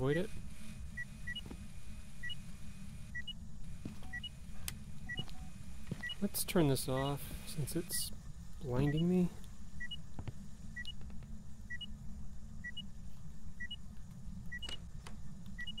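A small electronic device beeps steadily in a repeating pattern.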